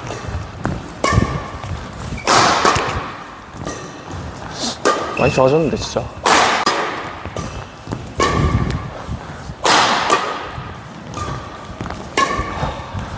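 Badminton rackets strike a shuttlecock back and forth in an echoing hall.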